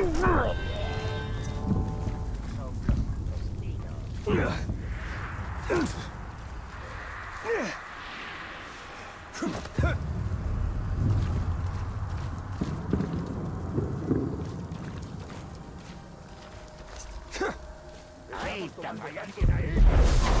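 Footsteps thud and scrape on roof tiles.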